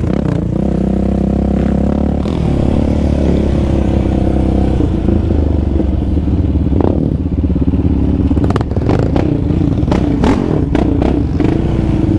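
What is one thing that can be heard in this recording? An engine buzzes loudly, revving up and down.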